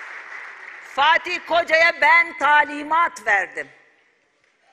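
A middle-aged woman speaks firmly into a microphone in a large echoing hall.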